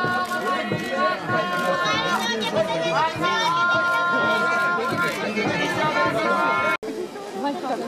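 A large crowd of men and women talks and calls out loudly outdoors.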